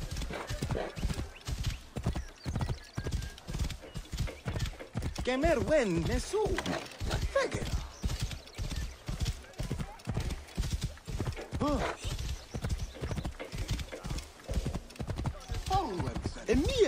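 A horse gallops with quick, steady hoofbeats.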